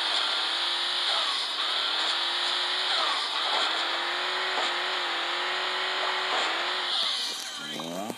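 A small cartoon engine drones and revs steadily.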